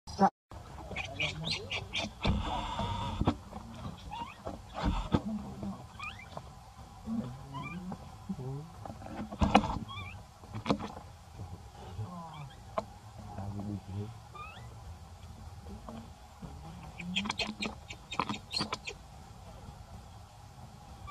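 A baby monkey squeals and cries close by.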